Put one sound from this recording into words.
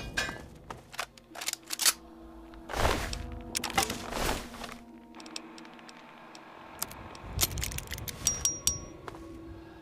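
Short electronic beeps and clicks sound.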